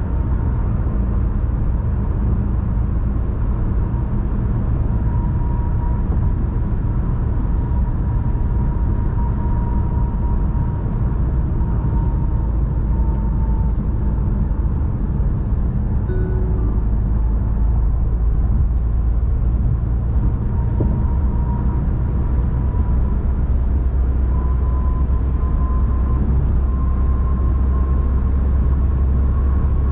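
Tyres roll with a steady low rumble on a highway.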